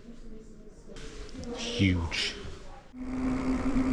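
A middle-aged man talks close by in a low voice.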